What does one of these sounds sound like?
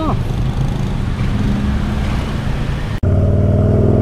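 A small motorcycle engine hums.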